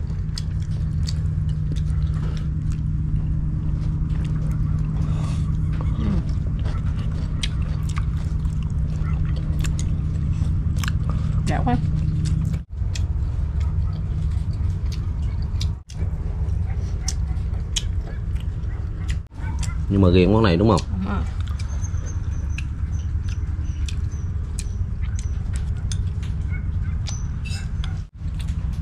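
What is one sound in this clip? Chopsticks click against a bowl and plate.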